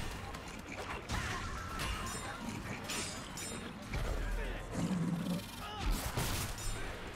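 Weapons clash and clang in a fierce battle.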